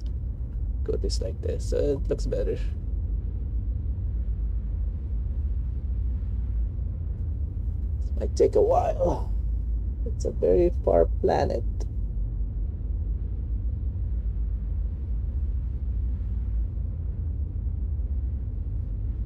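A spacecraft engine hums with a low steady rumble.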